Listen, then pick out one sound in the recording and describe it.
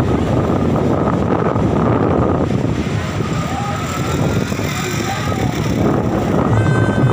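Waves crash and wash onto the shore.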